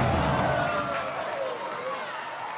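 A large audience cheers and applauds in a big hall.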